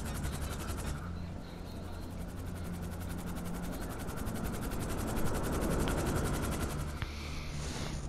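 A large twin-rotor helicopter hovers with a deep, droning roar.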